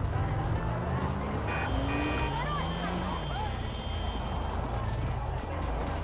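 Car engines hum as traffic passes nearby.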